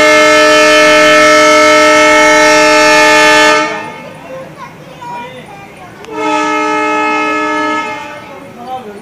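A train horn blows loudly in long blasts.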